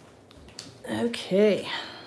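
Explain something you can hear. Paper rustles softly as hands handle it.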